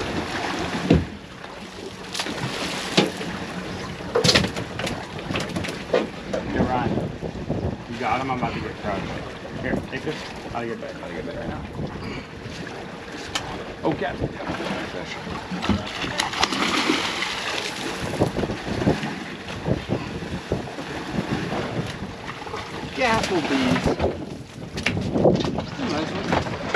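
Wind blows across open water outdoors.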